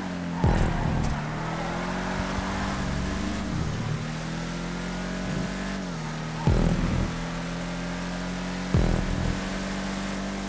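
A car scrapes and thumps against a wall.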